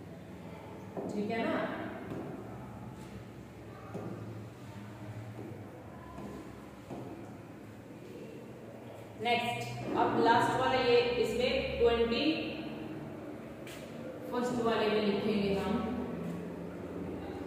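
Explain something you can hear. A girl speaks clearly, close by, in short phrases.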